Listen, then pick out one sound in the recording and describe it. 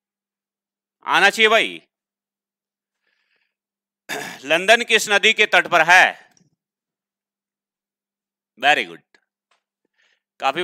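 A man speaks with animation into a headset microphone, in short bursts with pauses.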